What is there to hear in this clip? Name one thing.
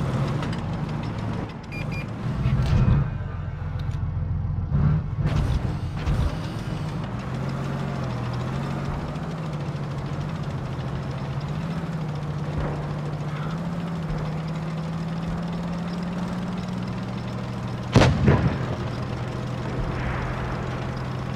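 A tank engine drones as the tank drives.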